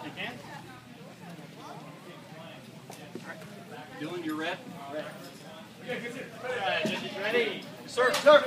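Children and adults talk and call out in a large echoing hall.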